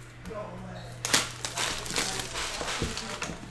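Plastic wrap crinkles and tears as a box is unwrapped.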